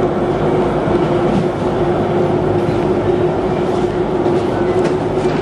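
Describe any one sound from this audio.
A low background hum fills a large indoor space.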